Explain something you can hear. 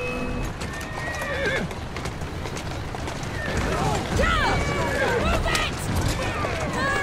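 Horse hooves clop on cobblestones.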